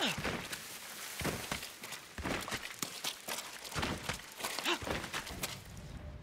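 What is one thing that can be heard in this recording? A sword slashes with sharp swishing strikes.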